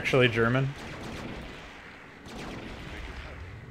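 Blasts and gunfire crackle in a battle.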